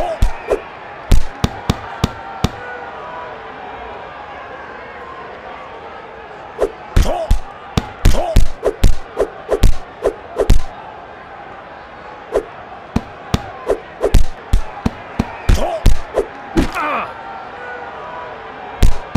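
Punches thud against bodies and gloves in quick bursts.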